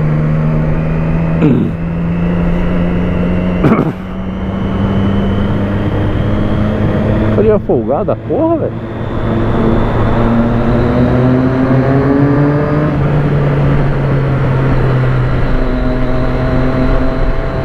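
A motorcycle engine hums steadily and changes pitch as it shifts gears.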